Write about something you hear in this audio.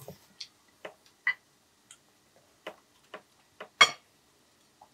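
Chopsticks tap against a small bowl.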